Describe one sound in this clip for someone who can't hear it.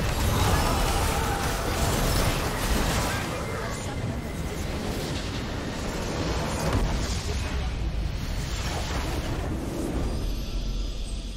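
Game spells and attacks crash and burst loudly.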